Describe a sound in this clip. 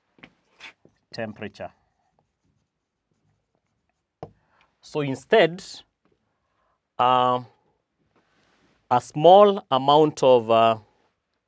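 A man speaks slowly and clearly, with long pauses, close by.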